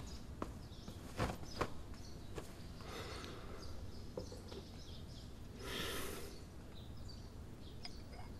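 Paper rustles softly nearby.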